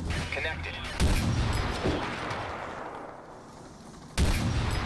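A sniper rifle fires loud shots that echo away.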